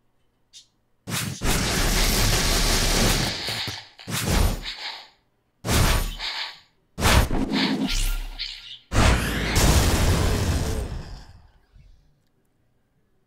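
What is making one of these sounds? Loud whooshing, crashing blasts of a sword attack burst out and fade.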